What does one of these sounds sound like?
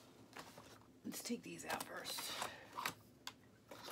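Plastic ink bottles knock together as they are lifted out of a box.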